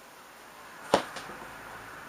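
A small cat lands with a sharp thump on a glass table.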